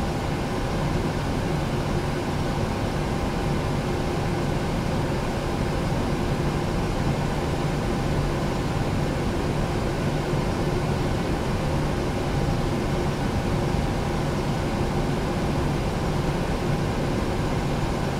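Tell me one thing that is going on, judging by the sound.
Cooling fans and electrical systems hum steadily.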